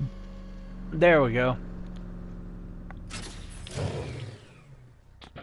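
A car's cockpit canopy opens with a mechanical whir and clunk.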